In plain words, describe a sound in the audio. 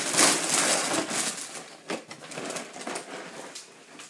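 A cardboard cereal box rattles as it is handled.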